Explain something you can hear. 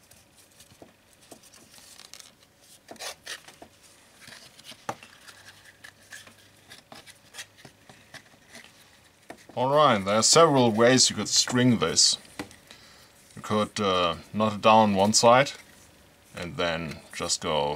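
Hands rustle and bend strips of leather.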